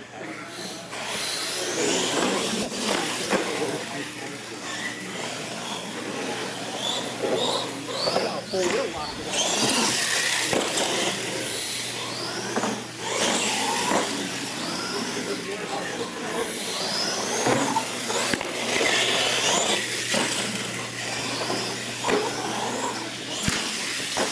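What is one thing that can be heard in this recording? Small electric motors whine as radio-controlled trucks race.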